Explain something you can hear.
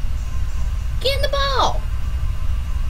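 A cartoonish creature gives a short, high, warbling cry that drops in pitch at the end.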